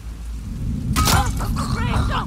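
A gunshot rings out sharply.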